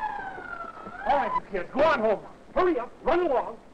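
A man speaks loudly in short bursts.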